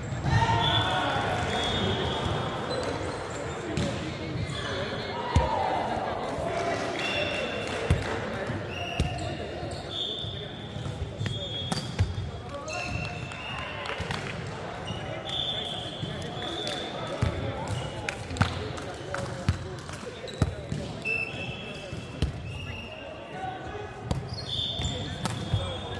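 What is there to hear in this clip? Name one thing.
Young men call out and chatter across the hall.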